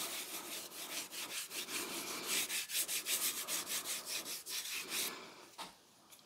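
A scouring pad scrubs rhythmically against a metal axe head.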